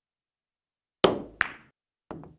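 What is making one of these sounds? A cue strikes a billiard ball with a sharp knock.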